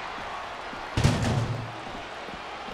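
A metal trash can crashes onto a hard floor with a loud clang.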